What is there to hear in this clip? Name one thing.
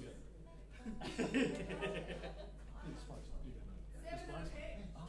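An older man laughs.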